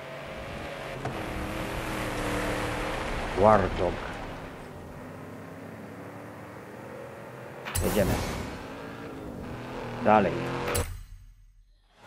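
A racing car's engine idles with a steady low hum.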